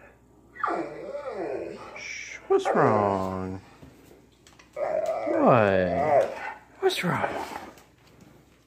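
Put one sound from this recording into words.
A dog whines and howls close by.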